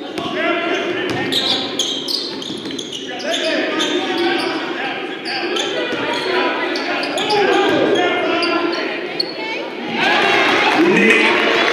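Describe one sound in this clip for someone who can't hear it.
A crowd cheers and chatters loudly in an echoing gym.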